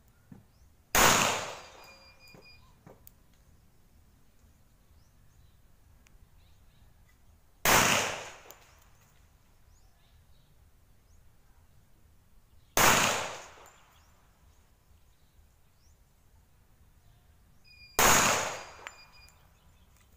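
A pistol fires single loud shots, each ringing out briefly outdoors.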